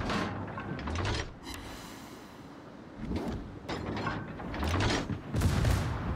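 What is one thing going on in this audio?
Heavy naval guns fire in booming salvos.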